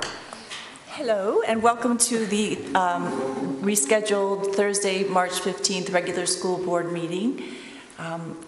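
A woman speaks loudly and clearly into a microphone.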